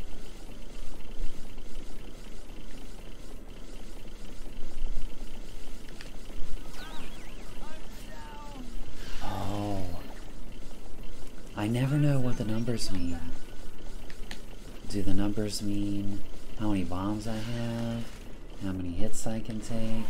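Video game music plays steadily.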